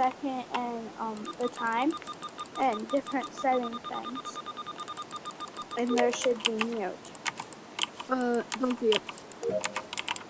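Short electronic clicks sound as buttons are pressed in a game.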